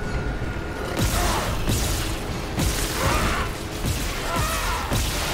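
A monster lets out shrill, snarling screeches close by.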